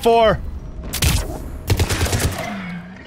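A rifle fires sharp bursts of shots.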